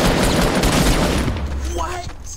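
A gun fires a loud burst of shots.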